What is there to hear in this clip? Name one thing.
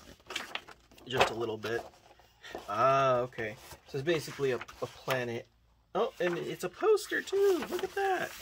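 A folded board creaks as it is opened out.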